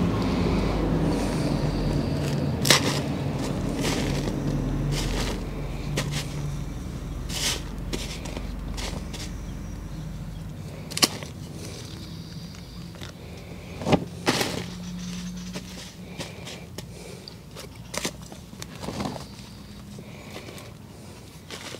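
A small trowel scrapes and digs into loose soil.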